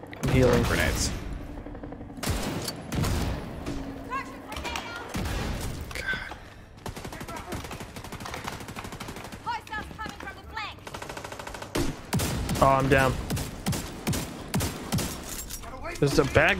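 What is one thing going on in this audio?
Gunfire and explosions crack loudly.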